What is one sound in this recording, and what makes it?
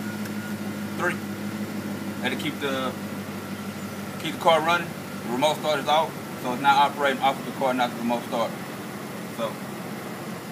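A man talks casually, close by.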